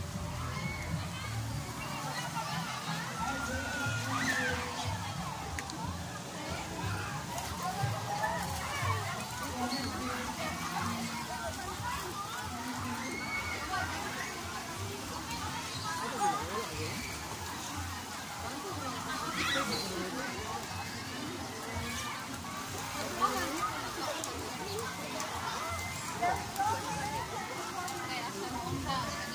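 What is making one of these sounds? Children and adults chatter and call out in the distance, outdoors.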